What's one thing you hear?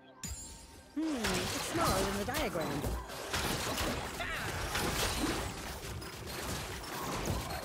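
Spell blasts zap and crackle in a fight.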